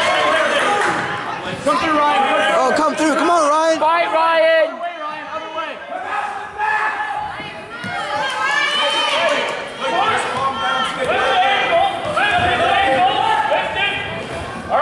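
A crowd of young men and adults shout encouragement loudly nearby.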